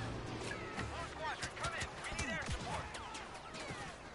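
Laser blasters fire in rapid zapping bursts.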